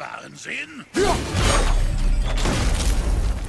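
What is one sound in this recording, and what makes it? A heavy wooden gate crashes and breaks apart.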